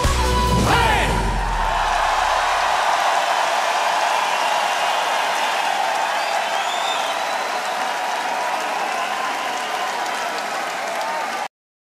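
A large crowd cheers and applauds in a big echoing hall.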